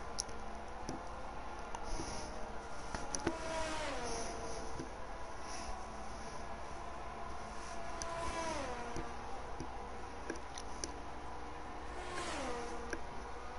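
Racing car engines whine at high revs and drop in pitch as the cars shift gears.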